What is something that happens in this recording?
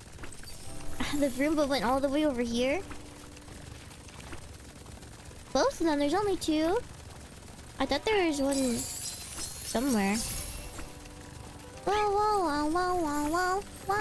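A young woman talks with animation into a close microphone, in a high, sing-song voice.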